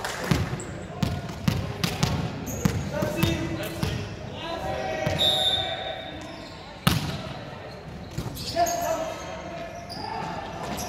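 Players' shoes squeak on the court.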